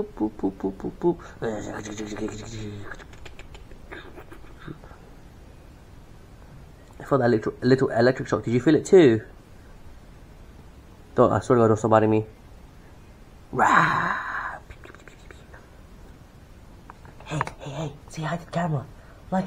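A cat meows repeatedly, close by.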